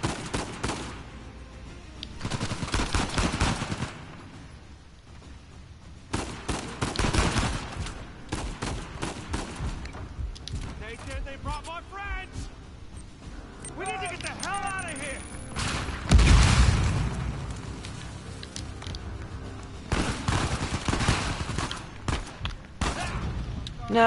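Gunfire rattles in bursts, echoing through a large hall.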